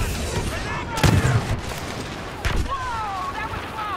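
An explosion booms loudly.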